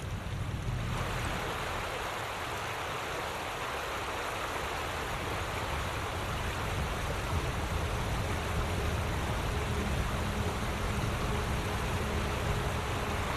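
A torrent of water rushes and churns over rocks close by.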